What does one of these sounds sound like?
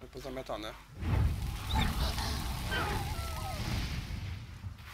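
Fire bursts and roars with a deep rumble.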